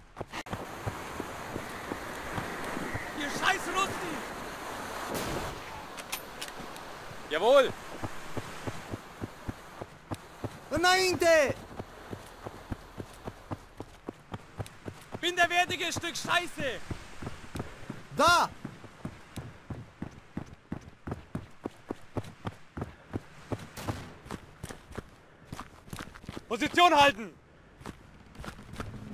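Footsteps run quickly over dirt and wooden floors.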